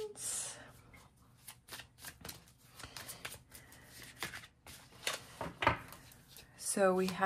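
Playing cards flick and rustle as they are shuffled by hand.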